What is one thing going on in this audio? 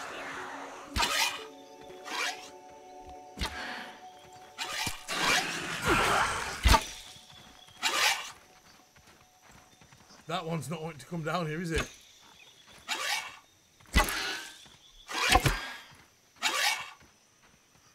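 Sharp whooshing thuds of a weapon swinging and striking come again and again.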